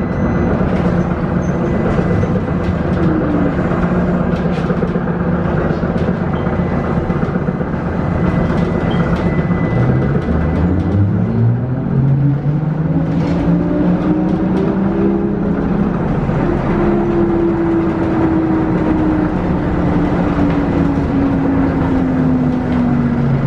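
A vehicle rumbles steadily from inside while driving.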